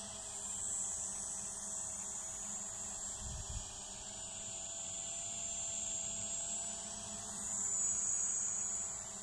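A drone's propellers whine steadily.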